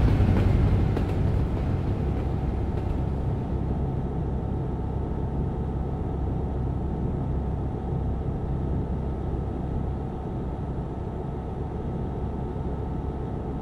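A truck engine hums steadily while driving at speed.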